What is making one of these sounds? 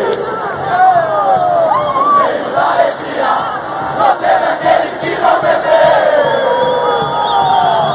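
Fans clap their hands in rhythm.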